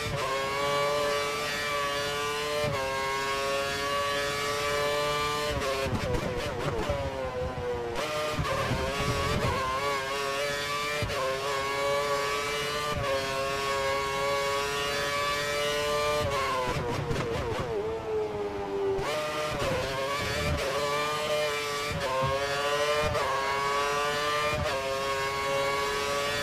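A racing car engine whines at high pitch, climbing through the gears and dropping when braking for corners.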